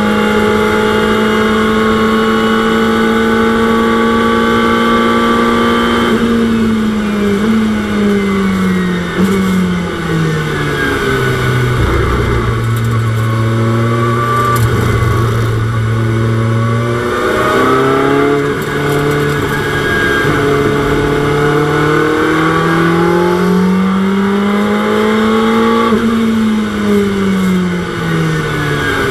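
A racing car engine roars loudly, its pitch dropping as the car slows and climbing again as it speeds up.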